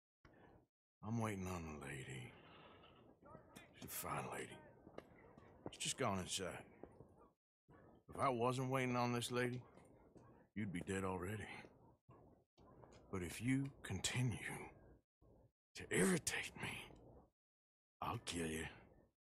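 A man speaks in a deep, gruff voice, calmly and menacingly, close by.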